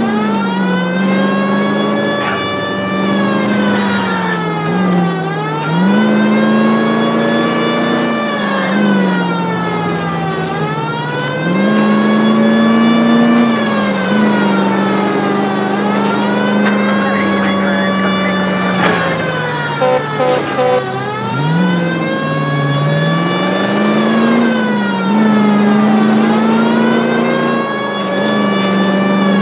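A car engine hums and rises in pitch as the car speeds up, then drops as the gears shift.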